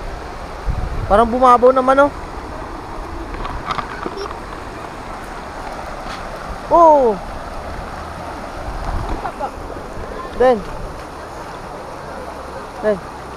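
A young boy speaks close by.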